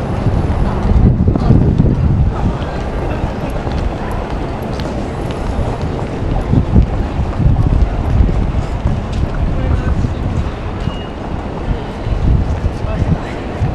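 A crowd of people murmurs and chatters outdoors.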